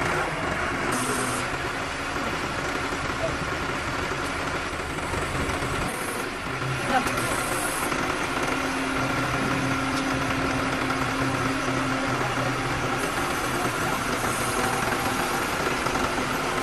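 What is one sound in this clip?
A crane's engine hums steadily close by.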